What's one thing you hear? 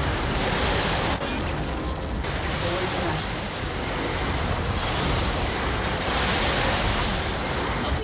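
Explosions boom and gunfire crackles in a fierce battle.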